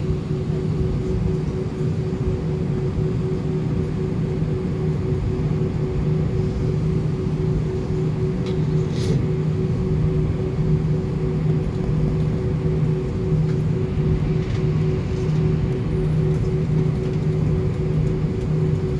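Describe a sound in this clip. An aircraft engine hums with a steady low drone.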